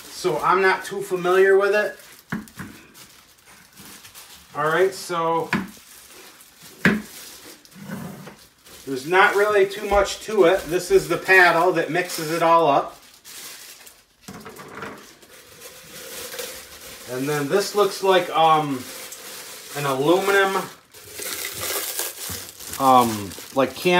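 Plastic wrap crinkles and rustles in a man's hands.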